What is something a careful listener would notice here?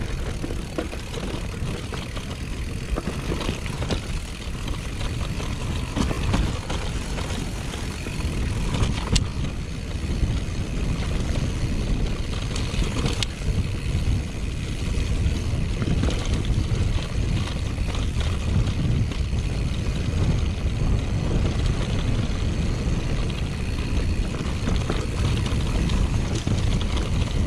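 Mountain bike tyres roll over a grassy, rocky trail.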